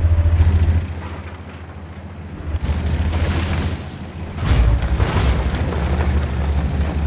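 Tank tracks clatter and squeak.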